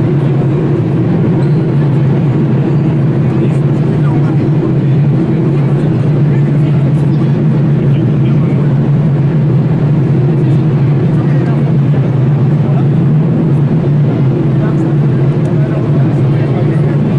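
A crowd of people murmurs in the distance in a large echoing hall.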